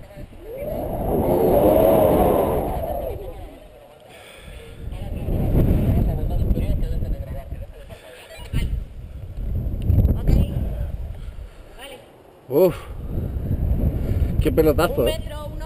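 Wind buffets the microphone in strong gusts outdoors.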